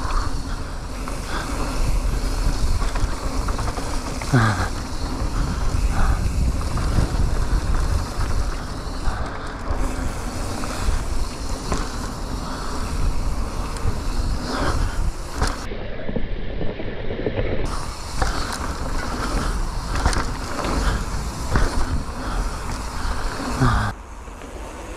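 Wind rumbles loudly against the rider.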